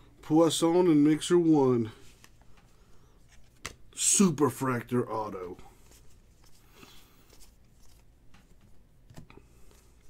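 Trading cards rustle and flick softly as hands flip through a stack.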